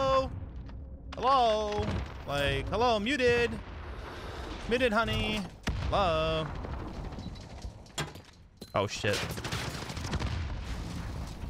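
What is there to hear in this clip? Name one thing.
A submachine gun fires in bursts.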